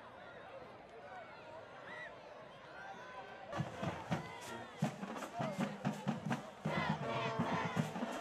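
A crowd in the stands cheers and shouts.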